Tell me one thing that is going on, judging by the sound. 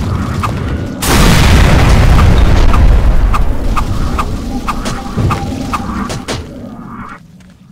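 Magical energy bursts crackle and rumble loudly.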